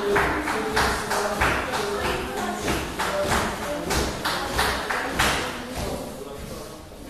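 A line of dancers stamps their feet in rhythm on a tiled floor.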